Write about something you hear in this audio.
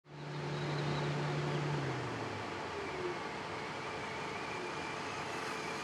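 A small electric motor whines as a toy car drives closer.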